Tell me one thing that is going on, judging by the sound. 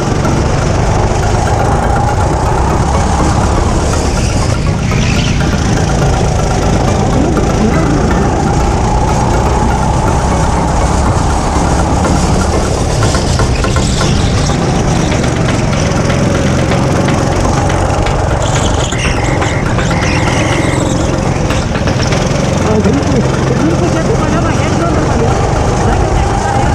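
A go-kart's small engine revs under load as it drives around a track.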